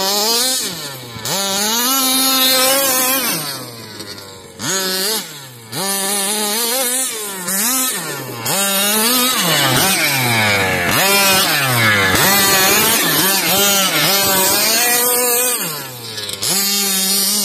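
A small electric motor whines, rising and falling in pitch as a toy car speeds and turns.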